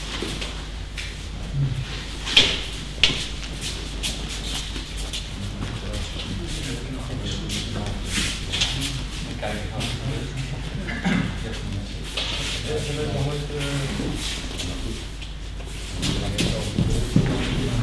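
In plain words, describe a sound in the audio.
Bodies thud onto a mat.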